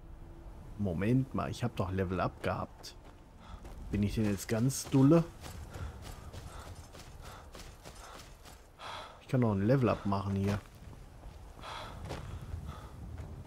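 Footsteps crunch softly on grass and gravel.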